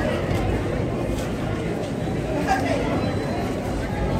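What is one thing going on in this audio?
Paper crinkles and rustles under hands.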